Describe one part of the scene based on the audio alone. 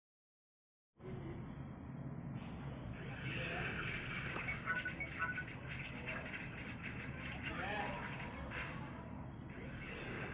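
Busy game music plays.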